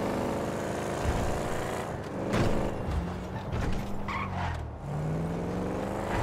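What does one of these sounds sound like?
A car engine hums and revs as it drives fast.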